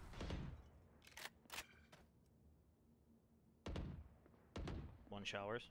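A rifle fires a few sharp shots.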